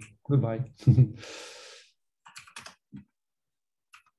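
A man speaks calmly through a computer microphone.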